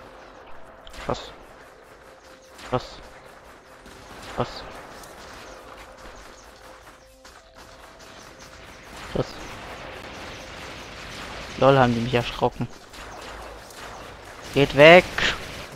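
A gun fires sharp energy shots.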